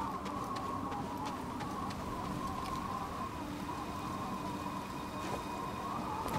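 A waterfall rushes steadily nearby.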